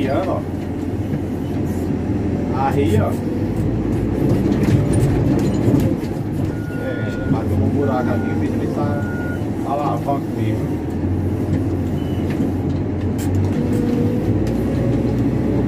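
Metal parts of a heavy machine clank and rattle over rough ground.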